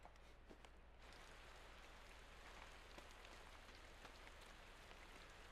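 Wind rustles through tall corn stalks outdoors.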